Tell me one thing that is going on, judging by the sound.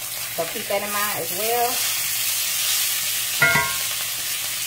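Metal tongs clank against a pan.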